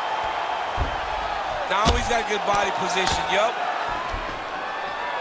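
Heavy punches thud against a body.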